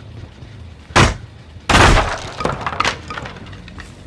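Wooden boards crash and splinter as a wall breaks apart.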